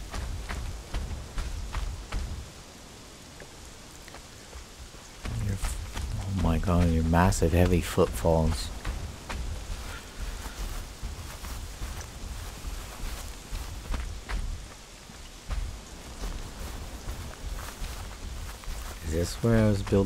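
Footsteps tread on sand and grass.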